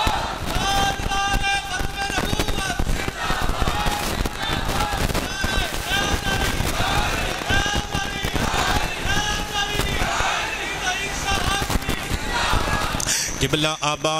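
A middle-aged man chants in a sustained, melodic voice through a microphone and loudspeakers.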